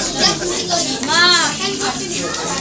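A small child squeals in a high voice.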